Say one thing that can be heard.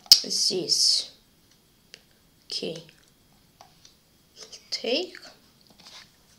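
A boy speaks briefly and calmly, close to a microphone.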